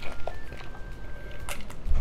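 A young woman gulps down a drink.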